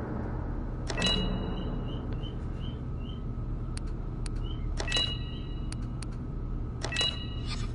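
Electronic menu chimes beep in short bursts.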